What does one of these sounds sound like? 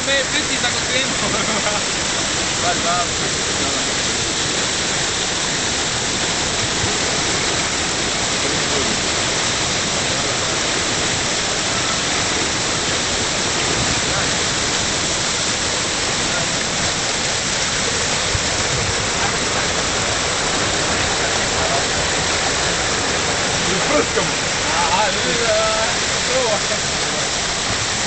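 Young men talk and call out casually nearby.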